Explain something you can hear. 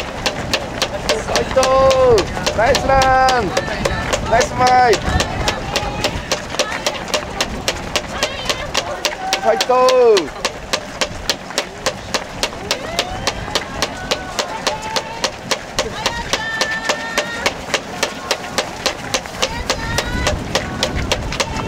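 Many runners' feet slap steadily on pavement close by.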